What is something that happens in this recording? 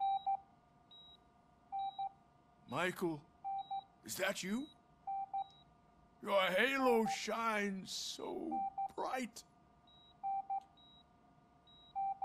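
A heart monitor beeps at a steady pace.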